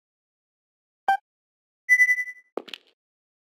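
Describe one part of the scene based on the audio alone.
A short electronic blip sounds as a menu choice moves.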